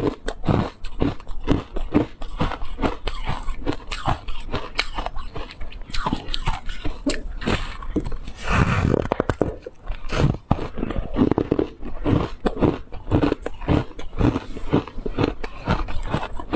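A young woman chews soft food close to a microphone with wet, smacking sounds.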